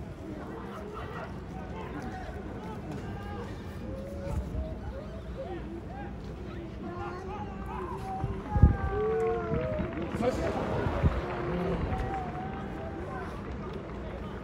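A large stadium crowd sings and chants steadily.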